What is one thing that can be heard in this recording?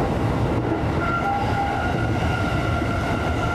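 Train wheels squeal faintly on a curve.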